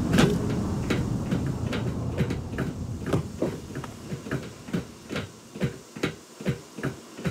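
Footsteps clang steadily on a metal walkway.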